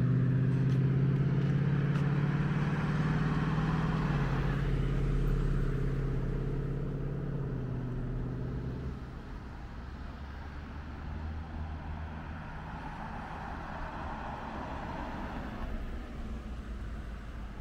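Cars drive past on a nearby road, their engines humming.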